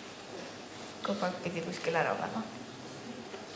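A young woman talks lightly into a microphone.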